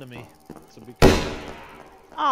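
A pistol fires a single loud shot that echoes away.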